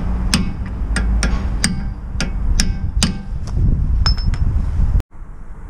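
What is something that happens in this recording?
A ratchet wrench clicks rapidly against a metal hub.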